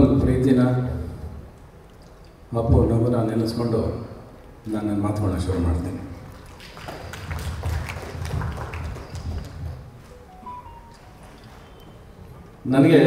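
A man speaks into a microphone over a loudspeaker, in a large echoing hall.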